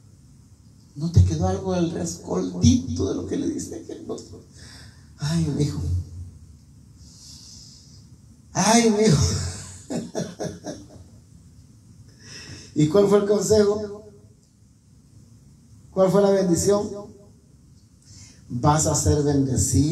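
A man sings or preaches with passion into a microphone, heard through loudspeakers in a small room.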